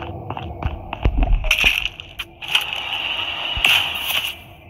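A gunshot rings out with a loud, sudden blast.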